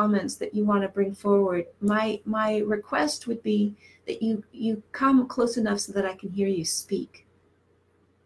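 A middle-aged woman speaks calmly and close to a headset microphone.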